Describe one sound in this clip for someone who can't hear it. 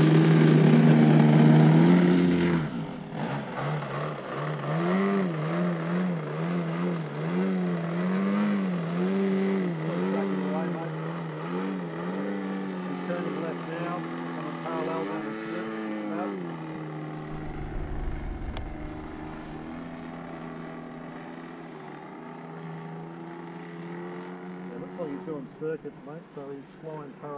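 A model airplane engine buzzes loudly nearby, then drones in the distance, rising and falling in pitch.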